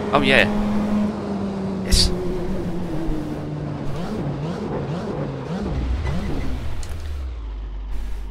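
A racing car engine winds down as the car slows.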